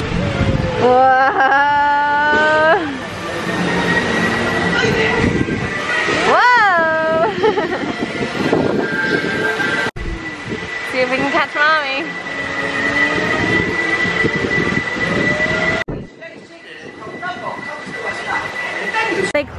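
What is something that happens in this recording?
A spinning fairground ride whirs and hums steadily outdoors.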